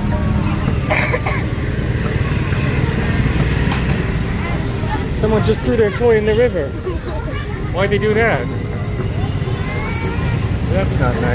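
Motor scooters ride alongside on a wet road.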